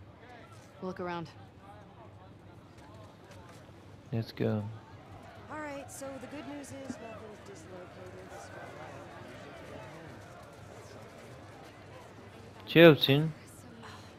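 A crowd of men and women chatters around.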